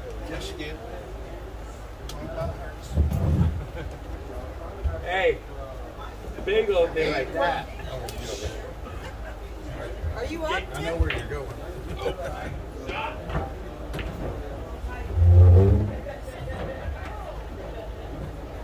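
Men talk casually nearby in a busy room.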